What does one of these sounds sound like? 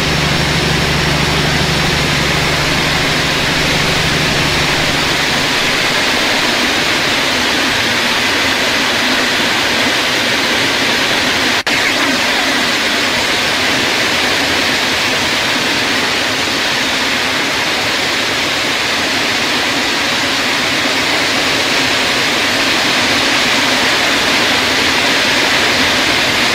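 A passing train rumbles and rushes loudly and steadily.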